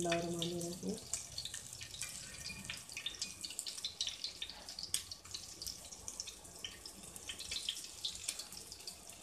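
Patties sizzle and crackle in hot oil.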